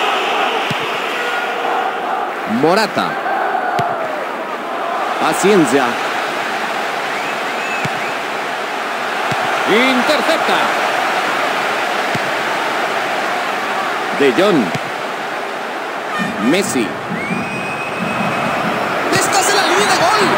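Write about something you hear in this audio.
A stadium crowd roars steadily throughout.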